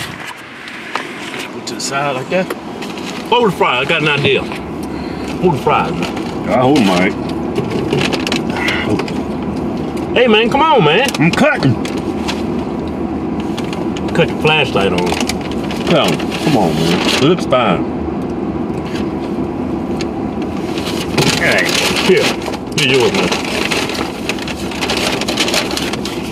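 A paper bag rustles and crinkles.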